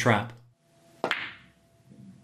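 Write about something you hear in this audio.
A cue stick strikes a billiard ball.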